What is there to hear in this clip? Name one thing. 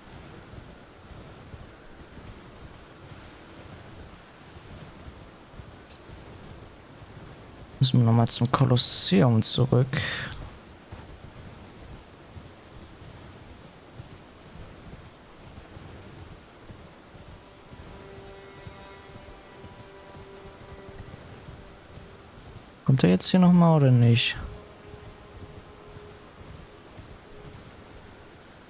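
A horse gallops steadily over soft ground.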